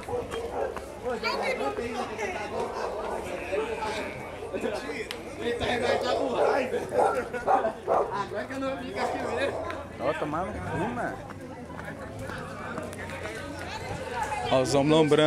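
Several men chatter and call out outdoors nearby.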